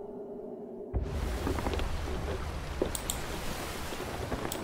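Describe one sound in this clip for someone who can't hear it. Waves crash against a sailing ship's hull.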